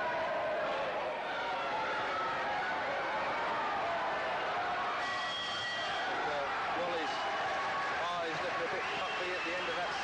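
A crowd cheers and roars in a large hall.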